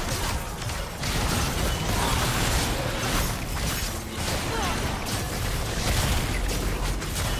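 Magical blasts and impacts clash in a fast game battle.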